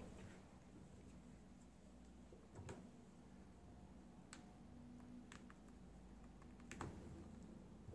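A phone clicks and taps against a plastic stand.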